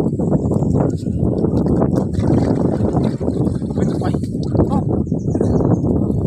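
Water splashes in a shallow stream as someone wades.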